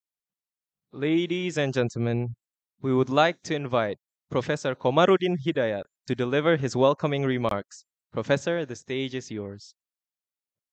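A young man reads aloud into a microphone.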